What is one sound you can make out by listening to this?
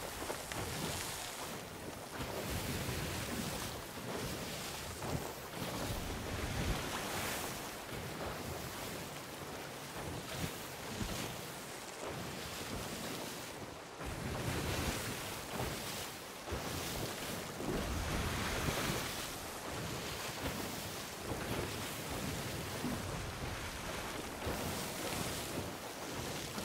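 Wind rushes steadily across open water.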